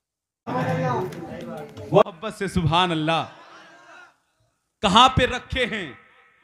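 A man sings loudly and with feeling into a microphone.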